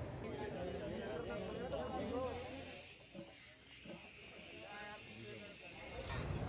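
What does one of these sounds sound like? Metal gas cylinders clank against each other.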